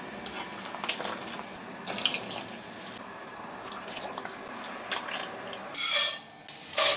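Food is lifted out of water with a strainer, dripping and splashing.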